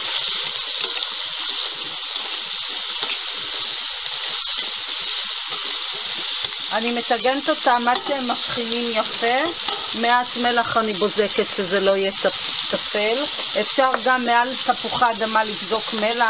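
A spatula scrapes against the bottom of a metal pot.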